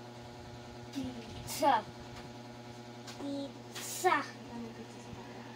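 A young boy speaks briefly nearby.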